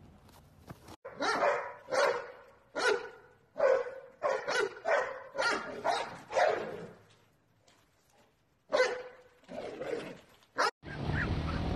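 A dog barks loudly several times.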